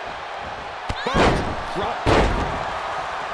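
A body slams heavily onto a wrestling ring mat with loud thuds.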